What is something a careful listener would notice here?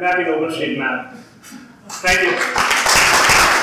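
A young man speaks through a microphone in a large echoing hall.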